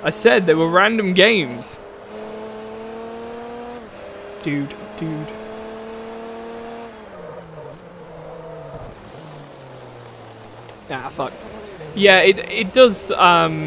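Tyres squeal as a race car skids.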